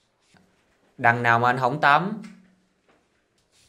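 Another young man speaks softly up close.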